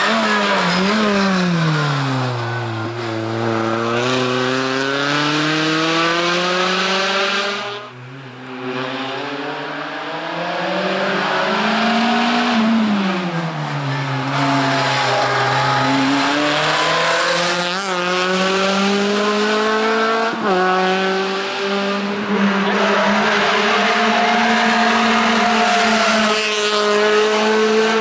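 A rally car's engine revs hard, rising and falling in pitch as it shifts gears.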